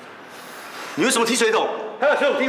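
A middle-aged man scolds sharply, close by.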